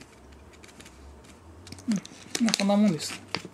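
Powder pours softly from a paper packet into a glass.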